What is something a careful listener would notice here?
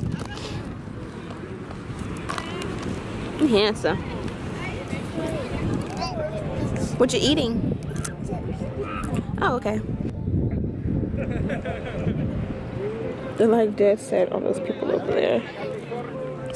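A toddler babbles and speaks in a high voice.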